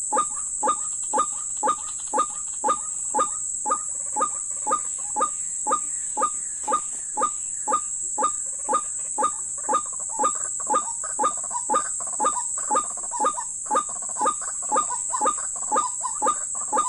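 A bird calls nearby with short, evenly repeated notes.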